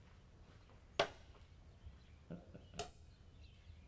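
Game pieces click sharply against a wooden board.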